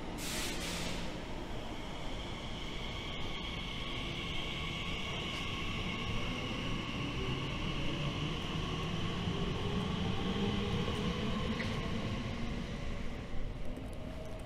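A train pulls away with a rising electric whine and a low rumble.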